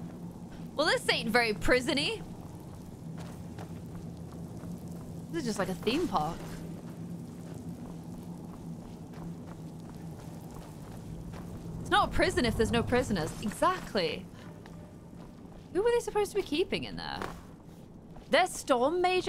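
A young woman talks with animation into a close microphone, in short bursts.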